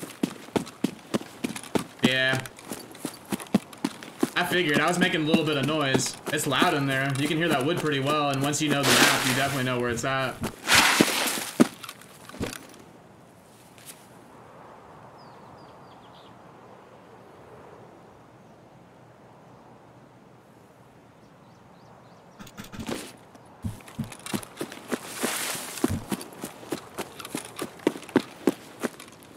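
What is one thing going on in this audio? Footsteps rustle through grass and crunch on gravel.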